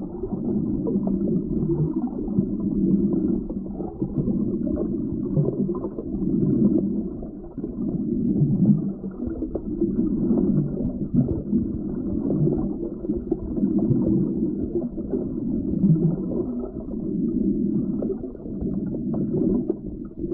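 Water rushes and gurgles steadily, heard from underwater.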